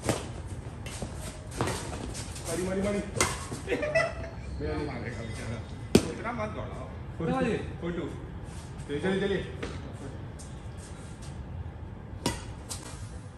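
A shuttlecock is struck with a racket with sharp pops.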